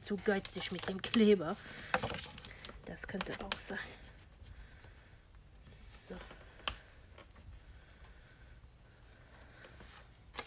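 A folding tool scrapes along a paper crease.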